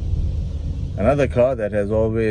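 A young man speaks calmly and close by.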